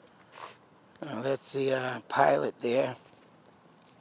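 A man speaks calmly through a small loudspeaker.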